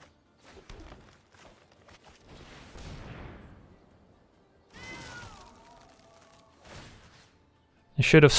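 Magical game sound effects whoosh and chime.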